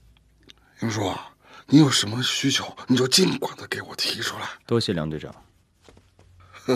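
A young woman speaks softly up close.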